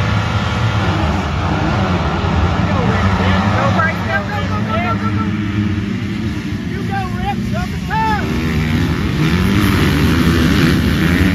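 A pack of dirt bikes roars off at once, engines climbing in pitch.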